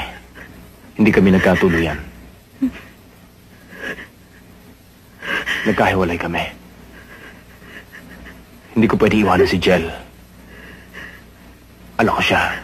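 A young man speaks in a low, tense voice.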